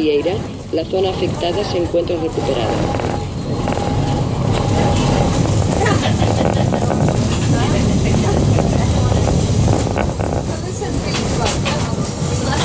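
A tram rumbles and rattles along its rails.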